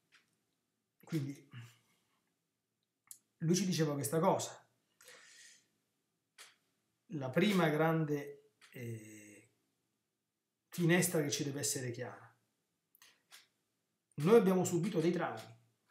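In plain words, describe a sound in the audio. A middle-aged man speaks calmly into a nearby microphone, in short phrases with pauses.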